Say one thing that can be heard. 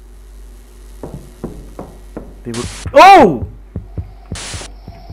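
Footsteps tap on a hard floor in an echoing hallway.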